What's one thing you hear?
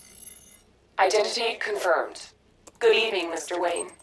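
A synthetic computer voice speaks calmly.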